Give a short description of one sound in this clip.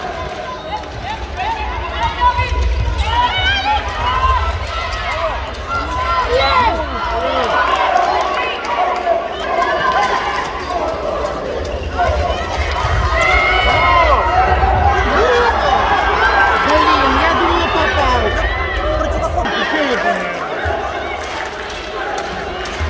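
A crowd of spectators chatters and murmurs throughout.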